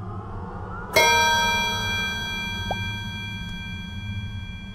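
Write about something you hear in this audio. A bright chime rings out and slowly fades.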